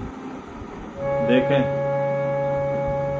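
A harmonium plays a sustained chord.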